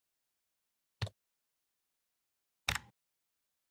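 A mouse button clicks.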